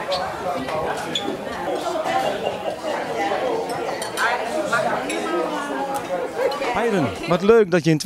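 A crowd of elderly people chatters in a busy room.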